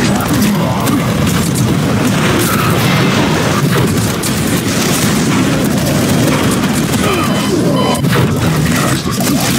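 Gunfire blasts rapidly in a video game.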